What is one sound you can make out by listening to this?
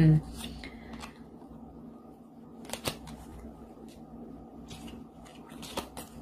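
Playing cards rustle and tap softly in a hand.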